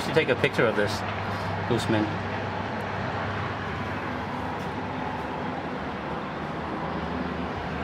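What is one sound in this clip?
Distant city traffic hums steadily far below.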